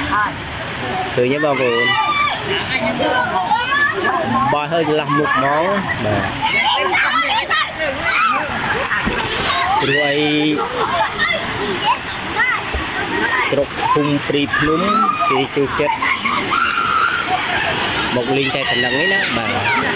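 Water rushes steadily over a weir.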